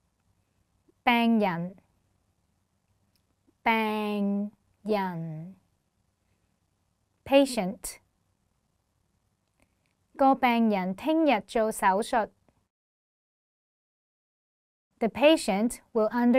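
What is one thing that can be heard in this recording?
A young woman speaks clearly and slowly into a close microphone, pausing between phrases.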